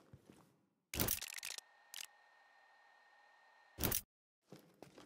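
Menu clicks sound as a map opens and closes.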